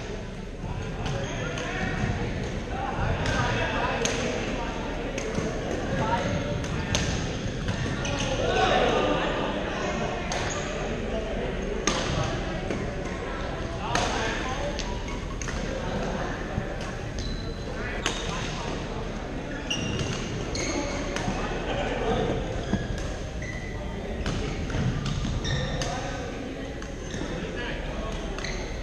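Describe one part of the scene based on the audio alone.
Young people call out and chatter across a large echoing hall.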